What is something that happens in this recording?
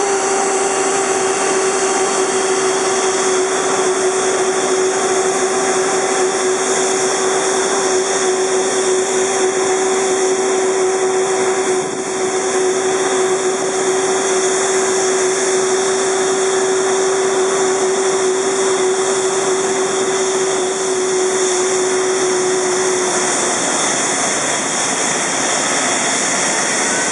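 A jet engine whines and roars loudly nearby at idle.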